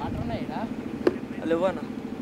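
A cricket ball clacks sharply against wooden stumps.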